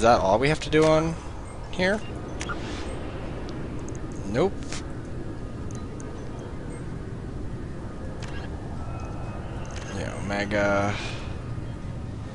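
Electronic menu sounds chime and click as options are selected.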